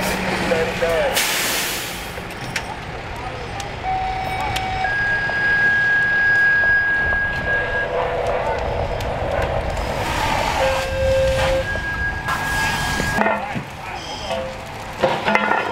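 A fire engine's motor rumbles steadily outdoors.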